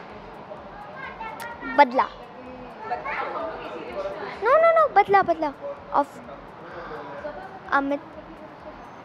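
A young girl speaks with animation into a microphone close by.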